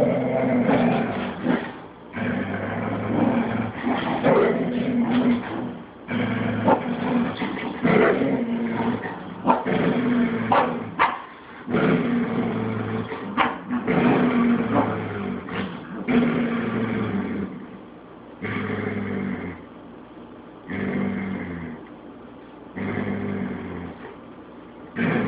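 Two dogs growl and snarl playfully, close by.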